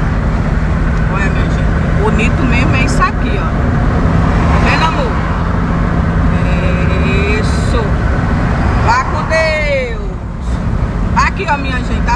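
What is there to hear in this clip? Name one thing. A car engine hums steadily as its tyres roll over the road.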